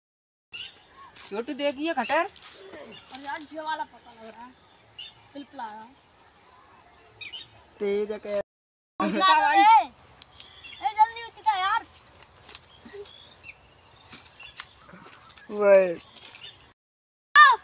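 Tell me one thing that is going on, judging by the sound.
A boy talks and calls out excitedly nearby.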